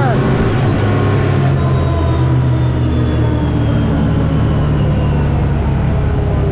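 An engine drones loudly and steadily close by.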